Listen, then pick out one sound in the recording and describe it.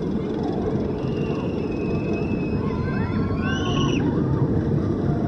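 Riders scream in the distance as a roller coaster plunges.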